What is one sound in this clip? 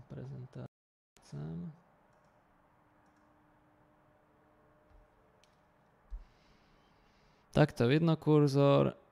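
A man speaks calmly into a close microphone, with pauses.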